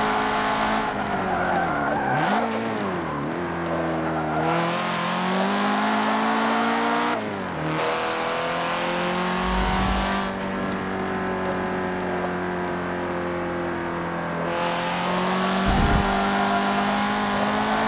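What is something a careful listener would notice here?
Tyres squeal as a car drifts through corners.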